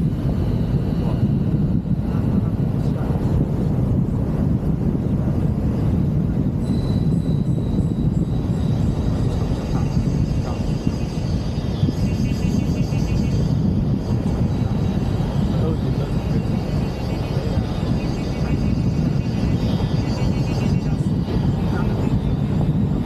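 Wind rushes loudly past a moving open car.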